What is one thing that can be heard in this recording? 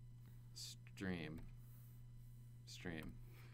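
A young woman speaks briefly and casually into a nearby microphone.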